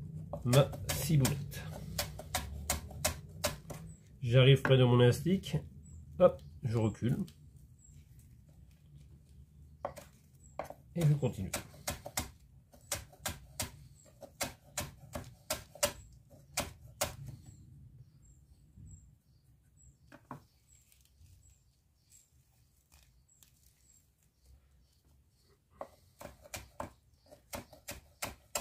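A knife chops herbs on a wooden board with quick, sharp taps.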